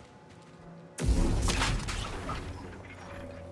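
A lightsaber swings with a loud, humming whoosh.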